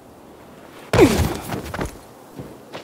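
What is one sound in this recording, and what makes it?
A heavy thud lands after a jump.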